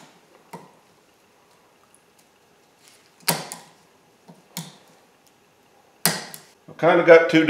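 A metal clamp tool clicks and snaps sharply a few times.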